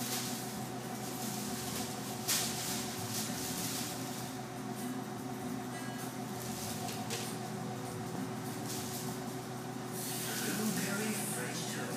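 A plastic bag rustles and crinkles as a cat pushes into it.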